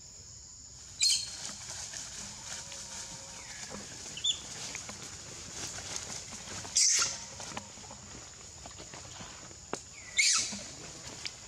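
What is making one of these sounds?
A monkey screeches loudly several times.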